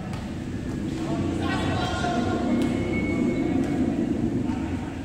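Young players call out to each other in an echoing indoor court.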